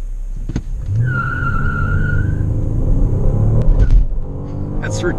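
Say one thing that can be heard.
A car engine revs up again from low speed.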